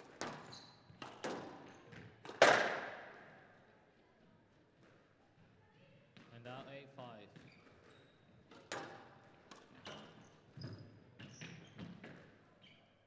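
A squash ball smacks hard against walls, ringing in an echoing court.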